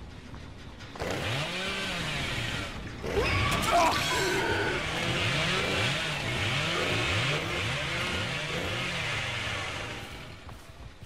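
A chainsaw revs up and roars in repeated surges.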